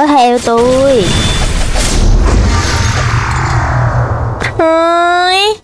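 A sword attack whooshes with a deep rumbling blast.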